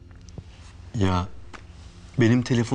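A young man speaks briefly in a low voice close by.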